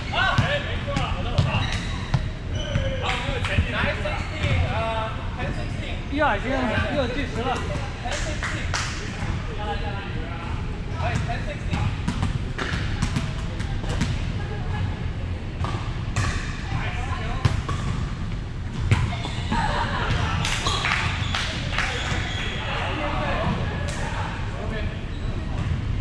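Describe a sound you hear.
Young men call out and talk across a large echoing gym.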